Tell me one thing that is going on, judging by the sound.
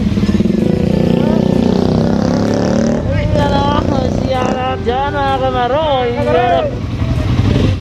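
Motorcycle engines idle with a steady low rumble.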